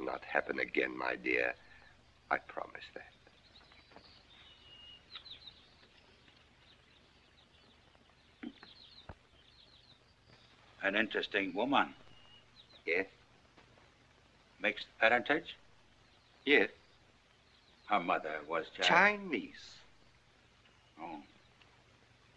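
A middle-aged man speaks calmly and warmly.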